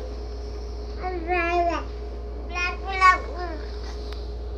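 A baby squeals in high, short cries close by.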